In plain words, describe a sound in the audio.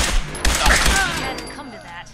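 Gunshots blast and echo.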